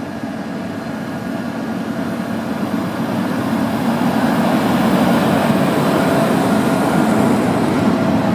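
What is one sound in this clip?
Steel wheels rumble and clatter on the rails.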